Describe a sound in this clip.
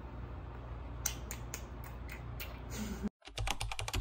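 A couple kisses with soft, repeated smacking sounds close by.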